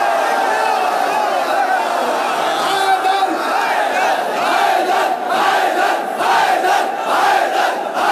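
A large crowd chants together in rhythm.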